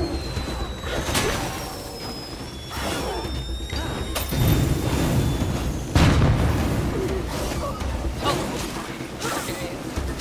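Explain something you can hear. Heavy blows thud during a close fight.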